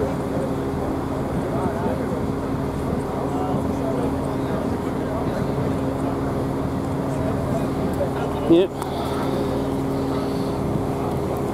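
A steam locomotive idles close by with a steady low rumble and hum.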